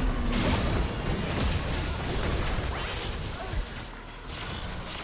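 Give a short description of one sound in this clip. Game spell effects whoosh, crackle and burst during a fast fight.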